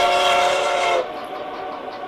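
A steam locomotive whistle blows loudly.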